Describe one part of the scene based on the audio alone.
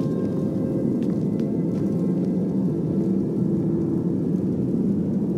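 A torch flame crackles softly.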